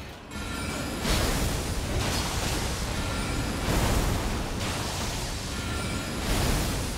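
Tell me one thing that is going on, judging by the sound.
A magic spell bursts with a loud shimmering whoosh.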